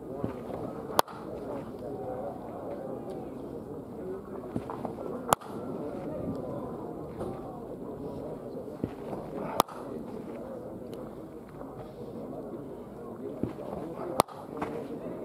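A bat cracks sharply against a baseball, again and again.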